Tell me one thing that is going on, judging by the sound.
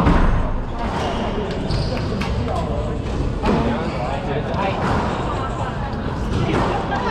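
A squash ball smacks against the walls of an echoing court.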